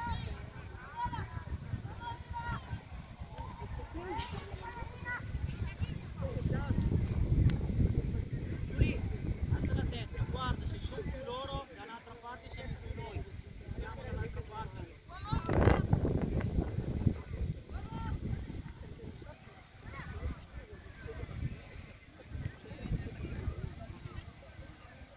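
Young girls shout and call out to each other across an open field.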